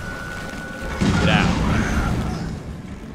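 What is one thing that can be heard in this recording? Sparks burst and crackle.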